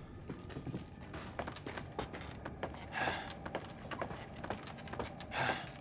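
Footsteps knock and creak on a wooden ladder.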